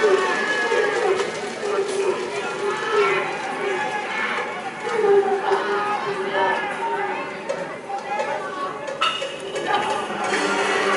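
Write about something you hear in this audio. A crowd of spectators chants and cheers loudly in a large open stadium.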